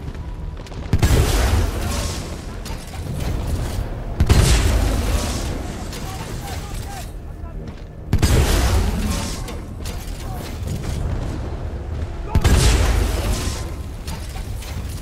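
Heavy explosions boom and rumble every few seconds.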